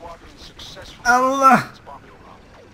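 A young man lets out a loud, drawn-out cry into a close microphone.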